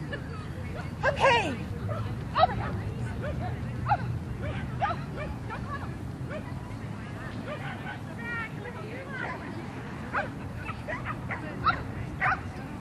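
A woman calls out commands to a dog.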